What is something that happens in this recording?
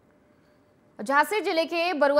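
A woman speaks clearly and evenly into a microphone, like a news reader.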